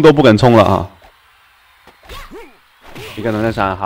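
A fighting game blow lands with a sharp smack.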